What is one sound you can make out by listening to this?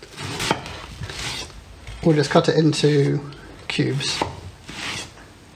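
A knife slices through raw fish and taps on a wooden cutting board.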